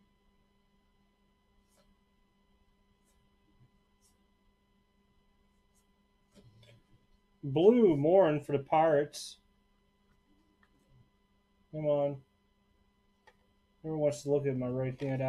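Trading cards slide and rustle against each other as hands sort through them.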